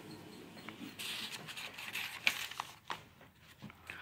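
Paper pages rustle as a page is turned.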